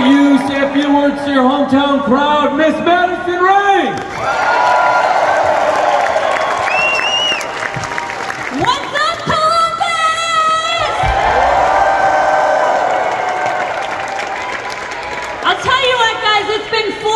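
A young woman speaks forcefully through a loudspeaker in a large echoing arena.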